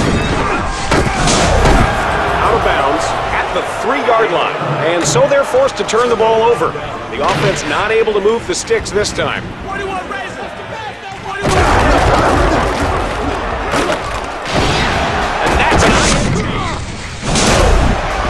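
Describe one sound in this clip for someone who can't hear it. Players collide with heavy tackling thuds.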